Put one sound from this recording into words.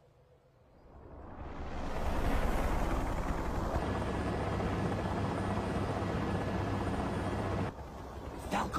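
An aircraft engine roars and rumbles overhead.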